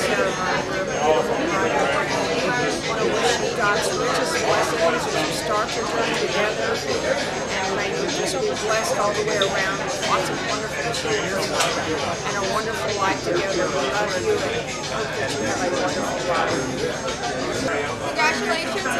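An older woman speaks calmly, close to the microphone.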